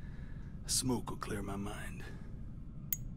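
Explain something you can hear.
A man speaks roughly and slowly, close by.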